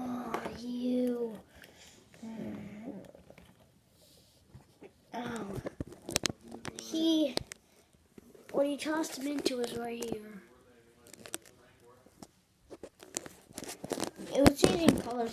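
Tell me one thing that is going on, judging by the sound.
A young boy talks with animation close to a phone microphone.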